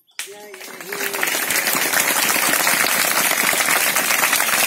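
Many young girls clap their hands rapidly.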